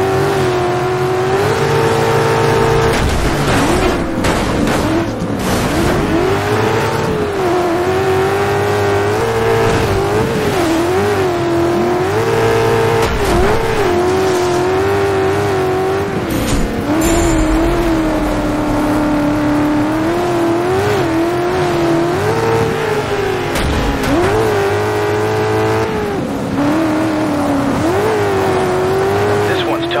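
A racing buggy engine roars loudly, revving up and down as gears shift.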